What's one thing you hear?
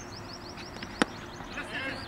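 A cricket bat sharply strikes a ball outdoors.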